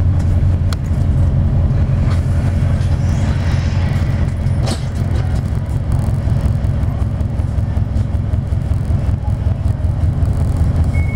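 Traffic passes close by on the road.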